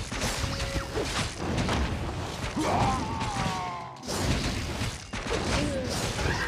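Weapons clash and magic blasts crackle in a fast battle.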